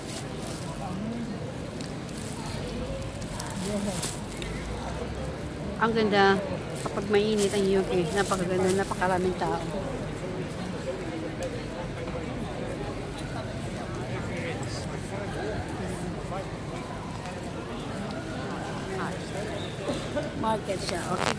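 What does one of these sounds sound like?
A woman talks close to the microphone in a calm, chatty way.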